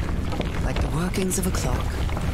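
A man speaks quietly into a headset microphone.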